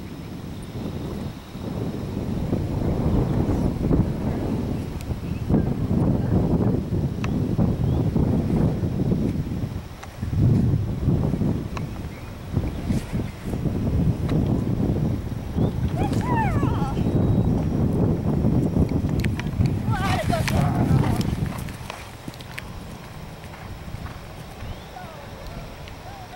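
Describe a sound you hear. Horse hooves thud on grass.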